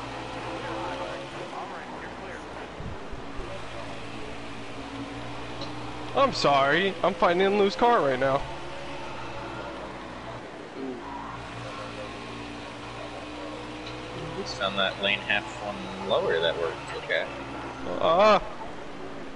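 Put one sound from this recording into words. A race car engine roars steadily at high speed.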